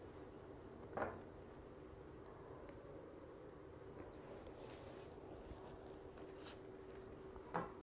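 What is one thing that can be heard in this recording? Cards tap softly as they are stacked.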